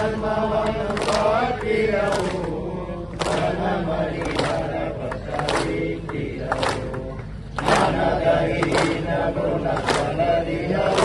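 Men clap their hands in rhythm.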